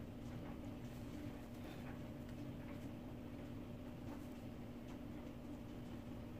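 Hands rustle softly through short hair.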